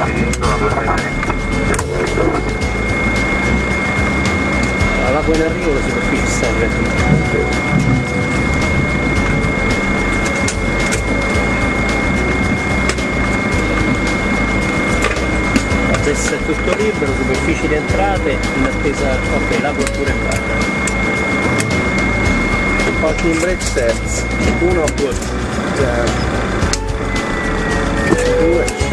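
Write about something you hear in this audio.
An aircraft's engines hum steadily nearby.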